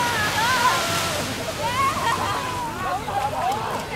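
Water splashes as a child wades out of the sea.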